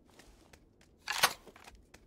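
A rifle clicks as it is handled.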